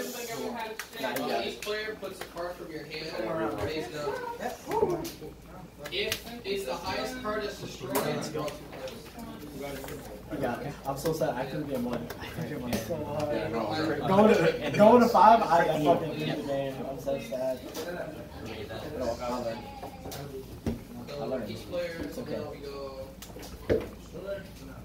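Playing cards rustle softly as they are shuffled in hand.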